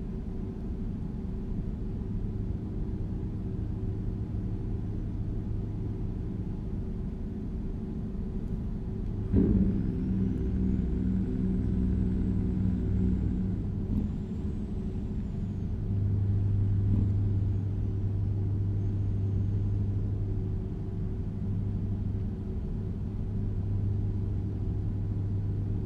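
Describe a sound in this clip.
A truck engine drones steadily with a deep rumble.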